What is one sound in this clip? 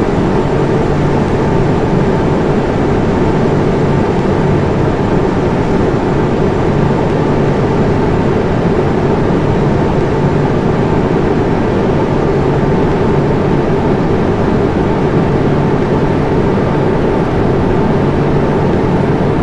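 Jet engines roar steadily in flight.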